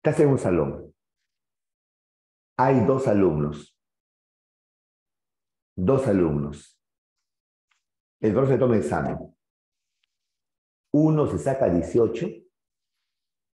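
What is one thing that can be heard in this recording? A man speaks calmly into a close microphone in short phrases with pauses.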